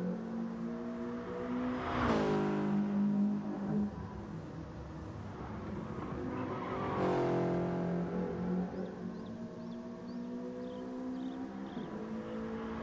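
A racing car engine hums steadily, its pitch rising and falling as the car speeds past.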